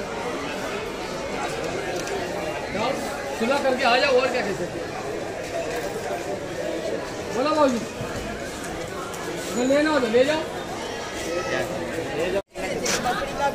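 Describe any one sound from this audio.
Several men talk casually nearby outdoors.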